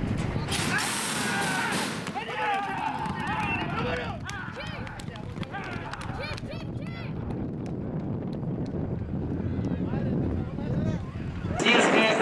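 Horses gallop away, hooves thudding on dirt.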